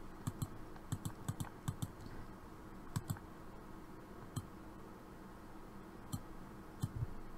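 A computer mouse clicks sharply, now and then in pairs.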